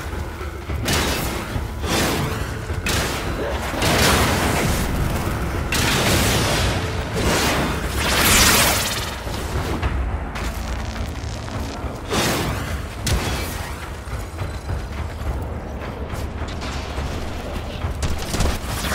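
Gunfire and explosions crack and boom in bursts.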